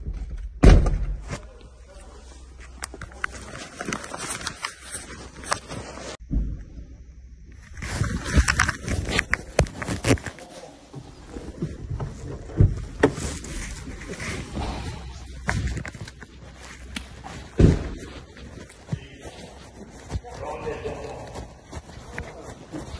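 Close thuds and rustling come from a handheld phone being bumped and rubbed.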